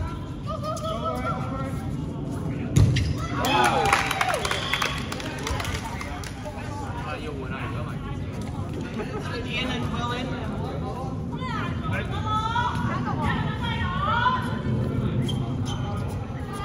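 Young men and women shout and call out to each other.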